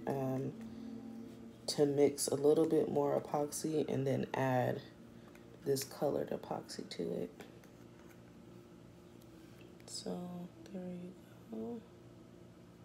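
A young woman talks calmly, close to the microphone.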